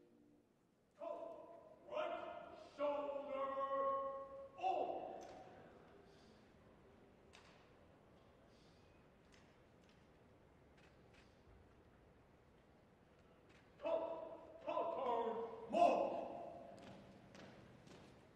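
A man calls out drill commands that echo through a large hall.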